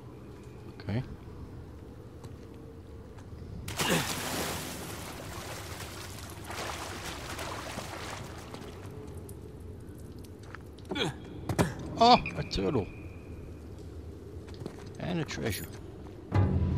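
A young man grunts with effort while climbing.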